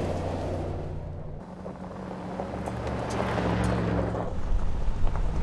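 Tyres crunch and spray over loose gravel.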